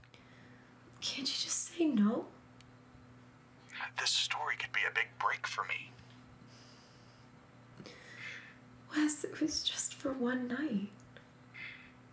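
A young woman speaks anxiously and quietly into a phone, close by.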